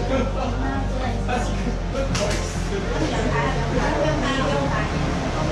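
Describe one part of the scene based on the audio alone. Adult men and women talk over one another nearby.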